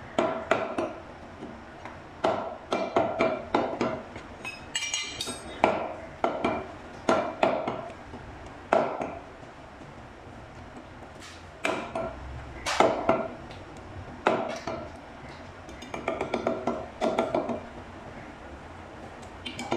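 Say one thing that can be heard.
A meat cleaver chops down hard on a wooden block, again and again.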